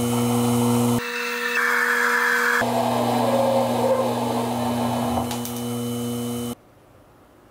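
A lathe cutting tool cuts into a turning metal rod.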